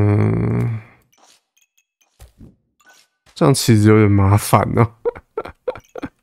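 A young man speaks animatedly close to a microphone.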